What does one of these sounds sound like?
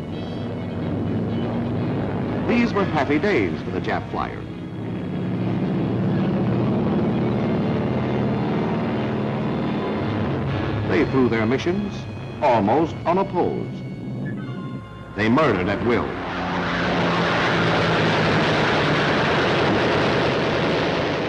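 Propeller aircraft engines drone overhead.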